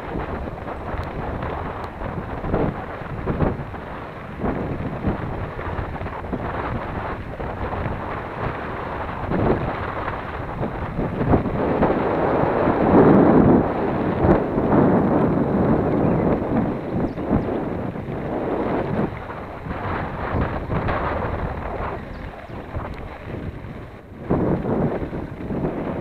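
Wind buffets the microphone of a descending bike.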